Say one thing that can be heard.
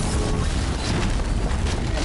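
An explosion booms and crackles with fire.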